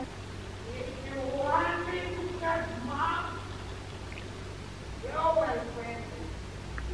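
A young woman speaks close by, in a lively, expressive way.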